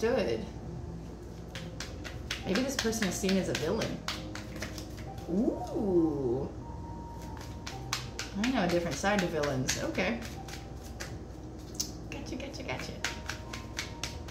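Cards riffle and snap as they are shuffled by hand.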